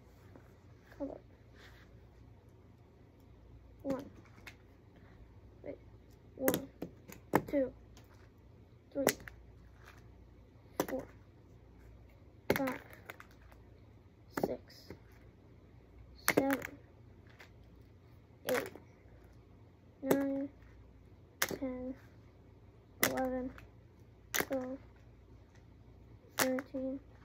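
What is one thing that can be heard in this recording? Small toy figures thud and slap onto a springy mat again and again.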